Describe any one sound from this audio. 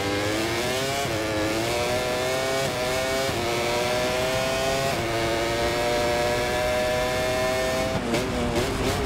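A motorcycle engine screams at high revs, climbing steadily in pitch and dipping sharply at each gear change.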